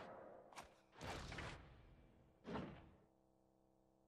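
A soft whoosh sounds as a menu box opens.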